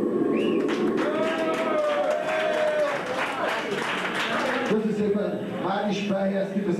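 A young man sings into a microphone, shouting.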